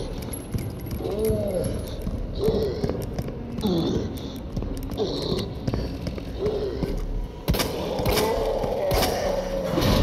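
A zombie groans and moans nearby.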